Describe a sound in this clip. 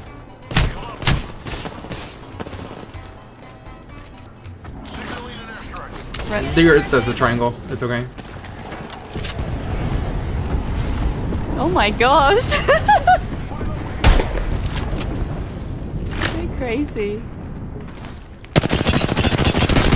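Gunshots crack in a game.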